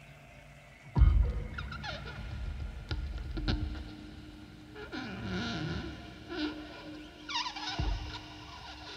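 Sharp electronic clicks and thumps burst out now and then.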